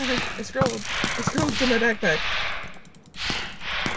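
A sword strikes with dull thuds.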